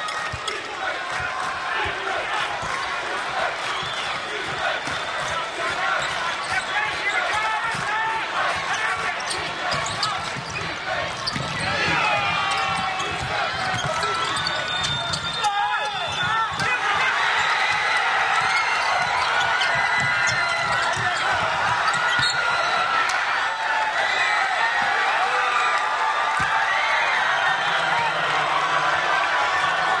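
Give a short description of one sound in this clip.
A crowd cheers and chatters in a large echoing arena.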